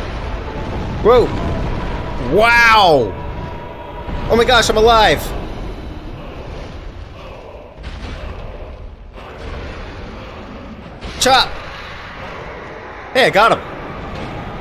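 A huge monster roars loudly in bursts.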